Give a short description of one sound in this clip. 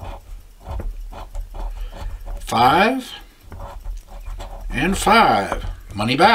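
A coin scrapes across a scratch card.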